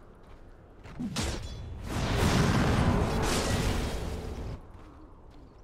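Magic blasts and weapon clashes of a game battle burst loudly.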